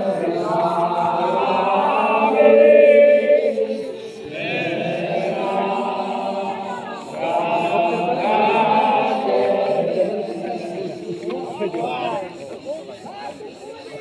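A crowd of men chants together in long, loud, drawn-out tones nearby.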